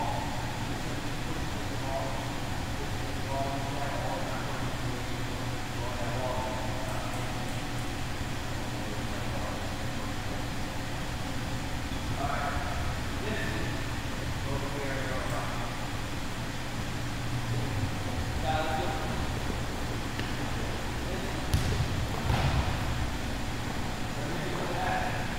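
A man calls out instructions loudly in a large echoing hall.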